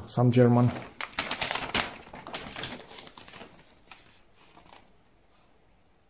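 Paper rustles and crinkles as a folded sheet is handled.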